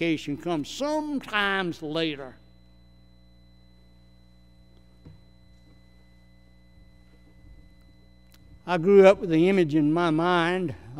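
An elderly man speaks with feeling through a microphone, pausing in between.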